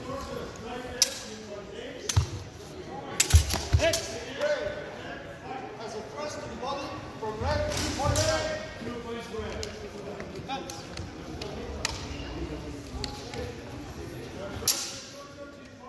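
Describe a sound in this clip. Steel swords clash sharply.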